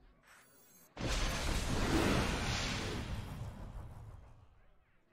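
A game piece lands on a board with a burst of magical effects.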